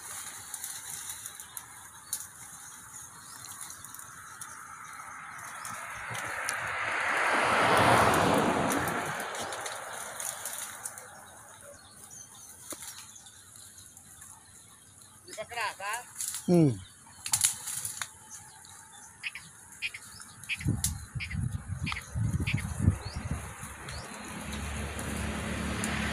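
Goats tear and chew at leafy plants.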